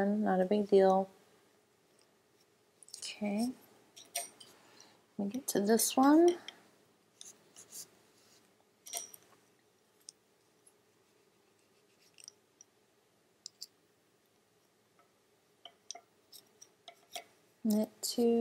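Wooden knitting needles click and tap softly.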